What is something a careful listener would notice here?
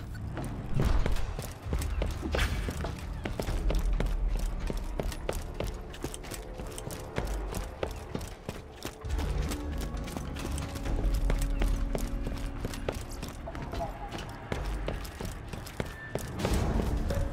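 Footsteps tap quickly on a hard metal floor.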